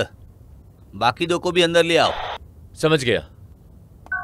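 An elderly man speaks into a walkie-talkie.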